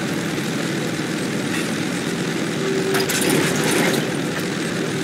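An armoured vehicle's engine rumbles steadily as it drives.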